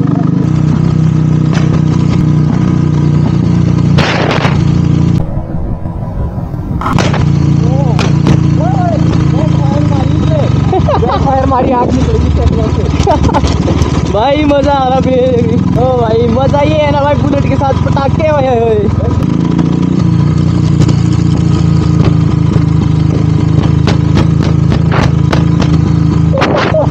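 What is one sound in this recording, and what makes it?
A motorcycle engine thumps steadily close by.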